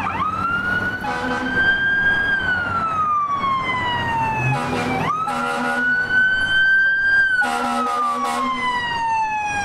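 A fire truck's air horn blasts in short bursts.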